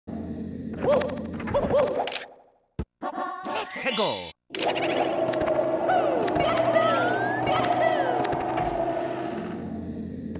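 Eerie video game music plays.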